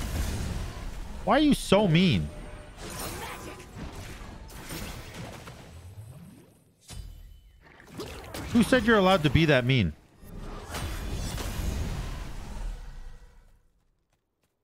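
Magic blasts and whooshes burst from a video game.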